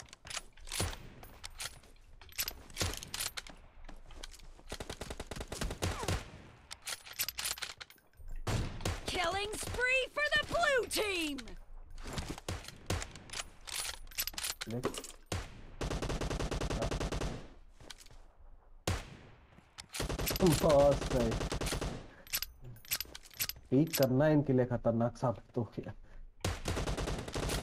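Rifle shots crack sharply, one after another.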